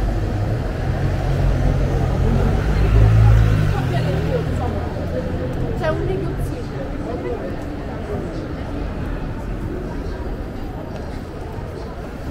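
Men and women talk quietly nearby as they walk.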